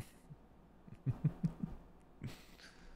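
A man laughs softly close to a microphone.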